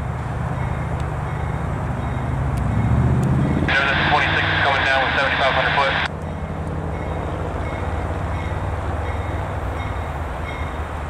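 A diesel train engine rumbles steadily as the train approaches.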